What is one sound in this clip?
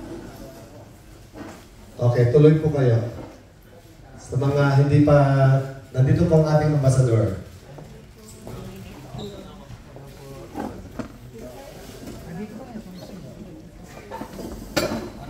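Men and women chat quietly in the background.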